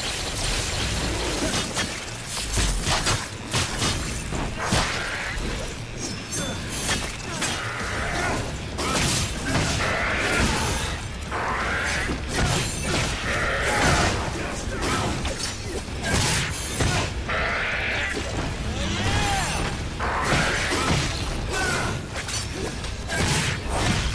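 Fiery blasts burst with loud whooshes.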